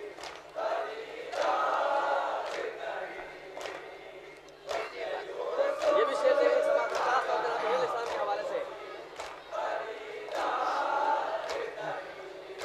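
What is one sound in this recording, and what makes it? Several young men chant loudly together through a microphone and loudspeakers.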